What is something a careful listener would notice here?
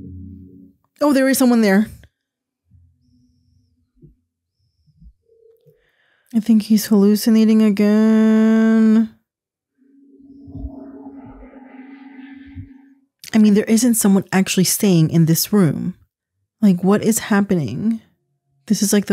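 A young woman speaks expressively into a close microphone.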